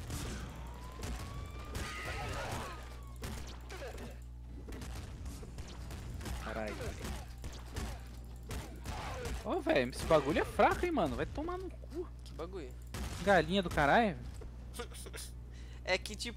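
Video game guns fire in rapid bursts.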